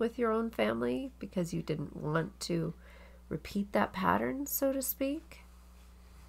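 A middle-aged woman speaks with animation into a close microphone.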